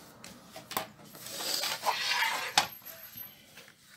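Paper slides and rustles across a table.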